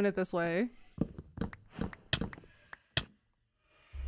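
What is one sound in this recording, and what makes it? Wooden blocks break with short hollow knocks.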